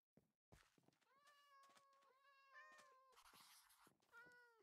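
A cat meows repeatedly.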